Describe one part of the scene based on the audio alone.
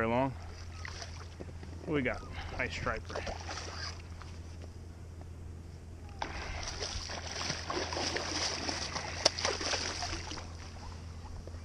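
A hooked fish splashes and thrashes at the water's surface.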